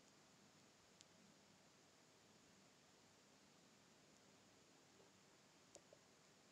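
A metal lid scrapes as it is screwed onto a glass jar.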